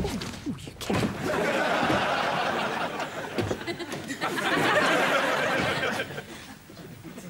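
A crowd of people cheers and chatters loudly indoors.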